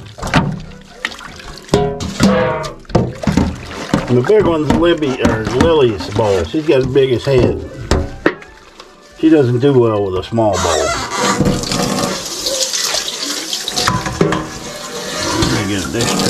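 A metal bowl clinks against a sink.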